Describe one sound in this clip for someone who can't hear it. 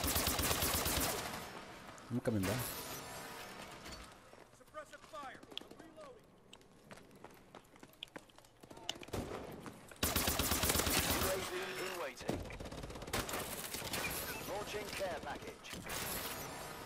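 Simulated automatic rifle fire rattles in rapid bursts.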